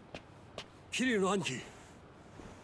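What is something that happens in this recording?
A young man calls out loudly.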